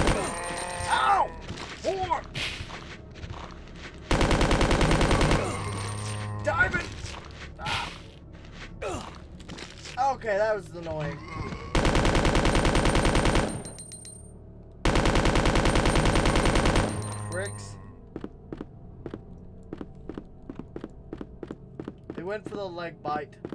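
Zombies moan and groan close by.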